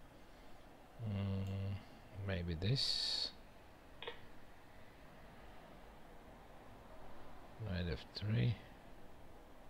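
A middle-aged man speaks in short, calm bursts, close to a microphone.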